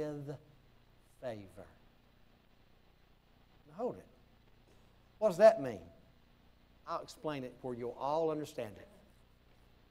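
A middle-aged man preaches with feeling into a microphone, in short bursts with pauses.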